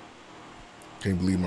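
A man speaks loudly and with animation close to a microphone.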